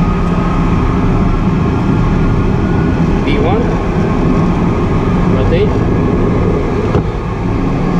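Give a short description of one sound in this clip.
An aircraft engine roars steadily up close.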